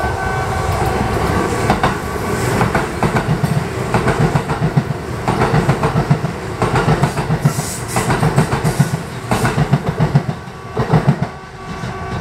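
Train wheels clack over rail joints and points.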